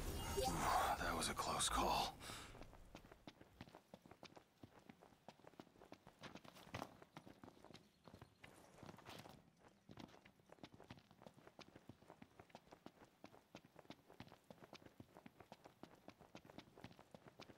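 Footsteps run quickly over dry ground and gravel.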